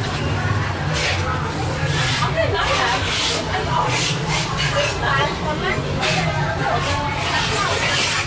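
A metal ladle clinks against a pot.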